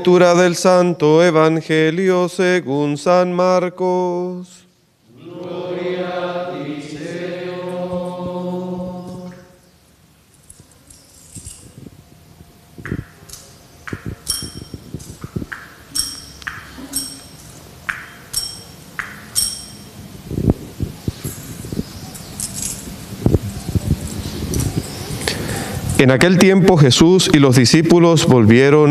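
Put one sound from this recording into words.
A man sings a chant through a microphone.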